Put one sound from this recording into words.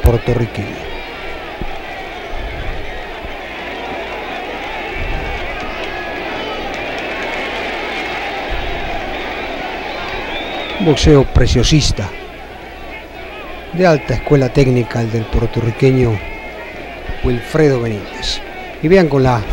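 A large crowd roars and cheers in a big arena.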